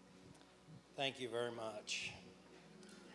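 An older man speaks briefly through a microphone.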